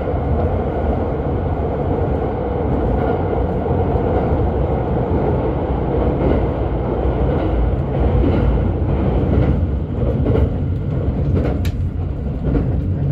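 A train rumbles steadily past, close by.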